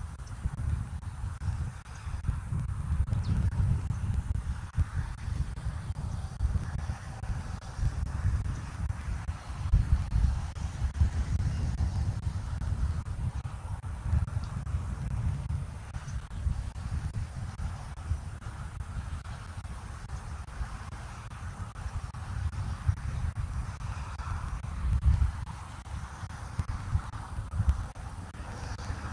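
Wind buffets and rumbles outdoors.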